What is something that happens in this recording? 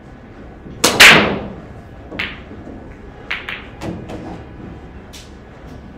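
Pool balls clack against each other and the cushions as they scatter.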